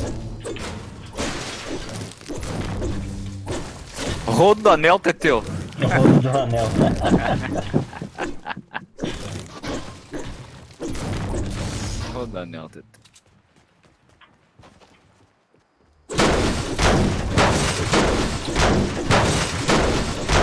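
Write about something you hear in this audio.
A pickaxe strikes brick and metal again and again.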